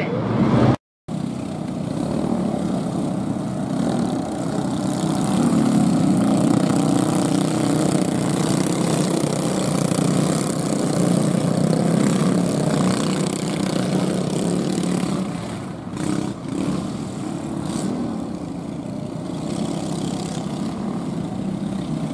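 Junior sprint car engines drone as the cars roll at low speed around a dirt track outdoors.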